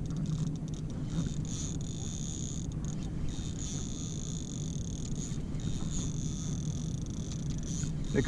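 A fishing line is reeled in on a spinning reel, which whirs as it is cranked.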